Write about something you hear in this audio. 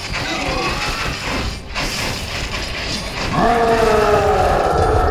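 Swords clash and thud rapidly in a busy battle.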